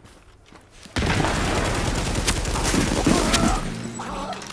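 Rapid gunshots crack.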